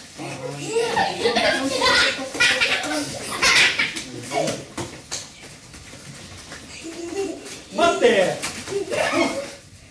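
Bare feet thud and patter on mats as people run.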